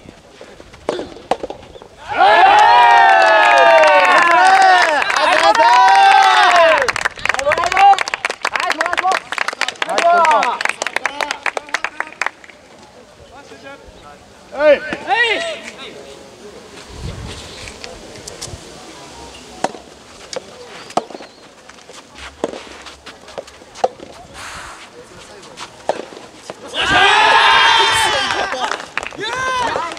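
Rackets strike a tennis ball with sharp pops.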